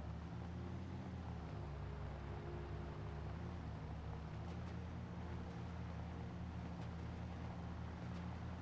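Tyres crunch over rough dirt.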